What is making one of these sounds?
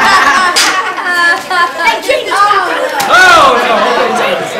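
Children laugh loudly.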